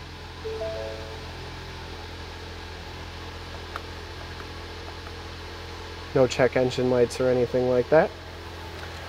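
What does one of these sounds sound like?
A car engine idles with a low steady hum.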